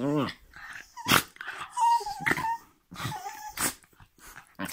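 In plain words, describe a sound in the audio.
A dog gives short sharp yelps.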